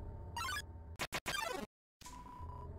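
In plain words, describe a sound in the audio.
A video game battle jingle sounds with quick rapid beeps.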